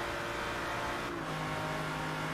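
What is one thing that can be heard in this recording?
A gear shift briefly drops the engine's pitch.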